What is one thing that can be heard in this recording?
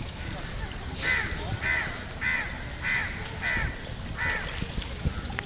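A swimmer's strokes splash rhythmically in water.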